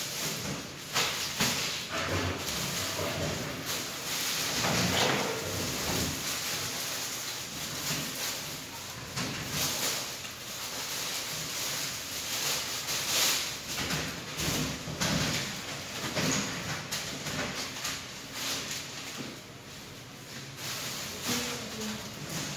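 Curtain fabric rustles and swishes as it is pulled down and hung.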